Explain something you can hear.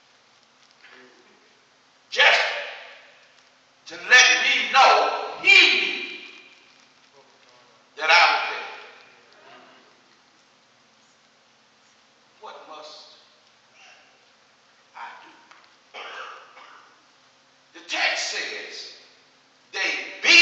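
A man preaches with animation through a microphone in an echoing hall, pausing between phrases.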